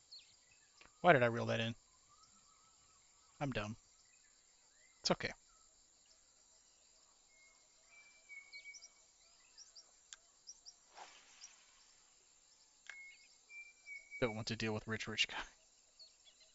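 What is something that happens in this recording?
A man speaks casually into a close microphone.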